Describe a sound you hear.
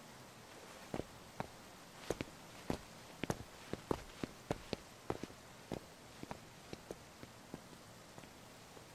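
Footsteps tap on hard stone.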